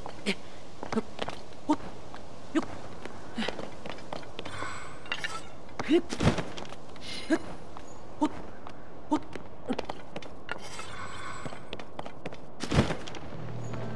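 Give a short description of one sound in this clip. A game character's hands and feet scrape and knock on rock while climbing.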